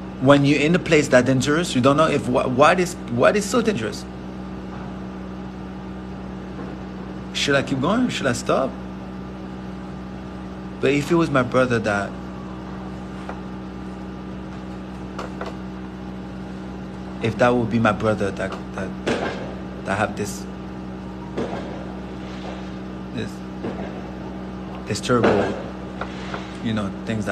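A young man speaks calmly close to a phone microphone, in short bursts with pauses.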